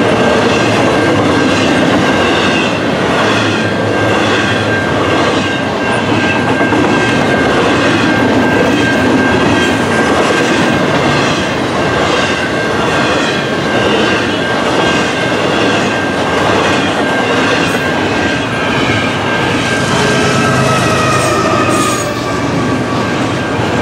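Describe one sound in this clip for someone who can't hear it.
A crossing bell rings steadily.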